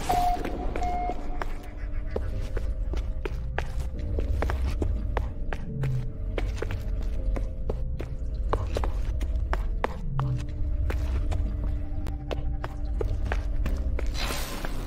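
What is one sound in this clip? Footsteps clank quickly on a metal floor.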